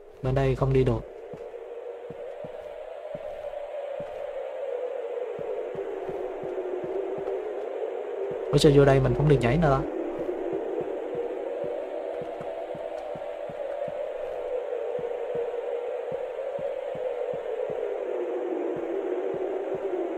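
Footsteps tap steadily on hard ground.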